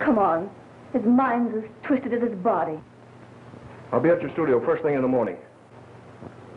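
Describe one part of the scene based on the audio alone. A man speaks tersely, heard through an old, hissy recording.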